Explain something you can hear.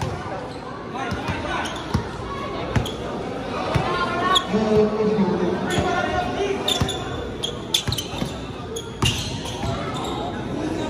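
A large crowd chatters and cheers loudly.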